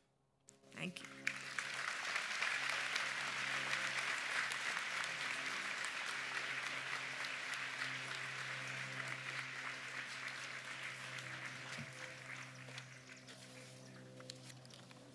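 An audience applauds outdoors.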